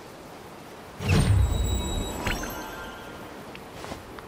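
A bright magical chime rings out with a deep swell and slowly fades.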